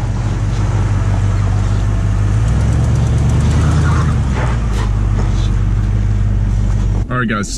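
Tyres crunch and grind slowly over rocks.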